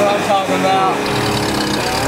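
A truck engine idles.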